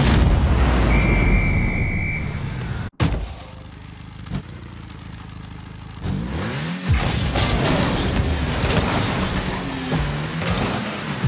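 A car engine roars and revs up and down.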